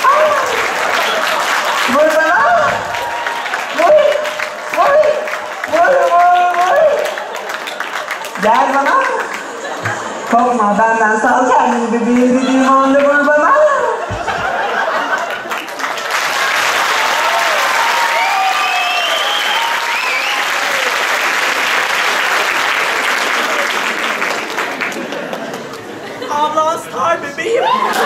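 A man speaks loudly and theatrically in a large echoing hall.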